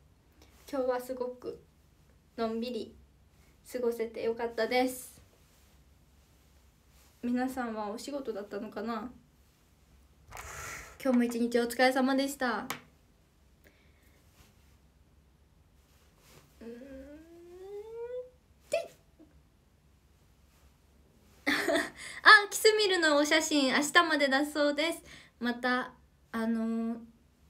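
A young woman talks close by in short, lively bursts with pauses.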